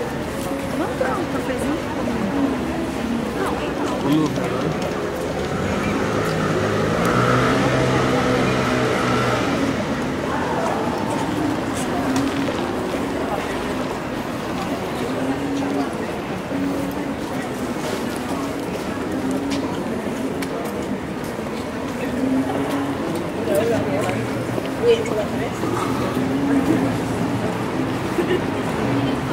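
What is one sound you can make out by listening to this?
Men and women chatter nearby as they walk past outdoors.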